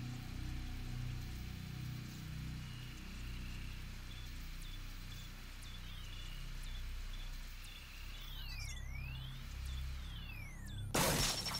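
A handheld scanner beeps steadily and sweeps up and down in pitch.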